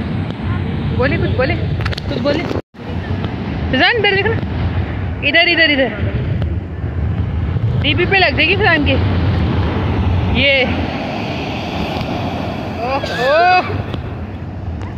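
Surf crashes and rushes steadily onto the shore.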